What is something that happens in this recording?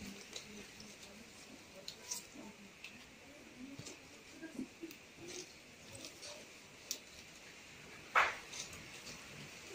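Stiff palm leaves rustle and crackle as they are woven by hand.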